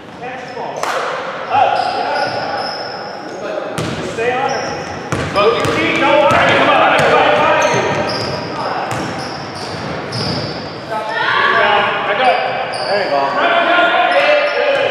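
Spectators shout and call out in a large echoing hall.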